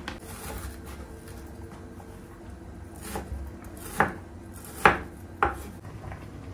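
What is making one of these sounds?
A knife taps on a wooden cutting board.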